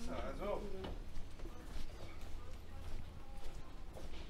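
Footsteps tap on a hard floor in an echoing hall.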